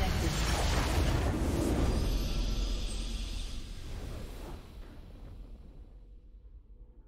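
A loud, booming game victory sound swells and slowly fades away.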